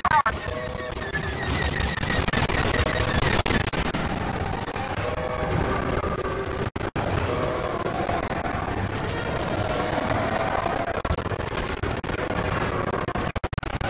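A starfighter engine roars steadily.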